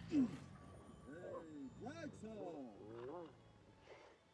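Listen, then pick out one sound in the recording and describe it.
A wolf whines and yelps.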